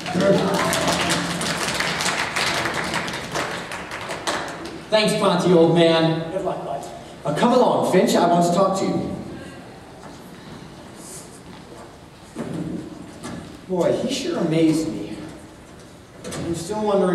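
A stage cast sings together, heard in a large echoing hall.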